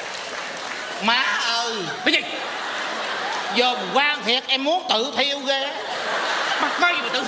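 A man speaks loudly and theatrically through a microphone.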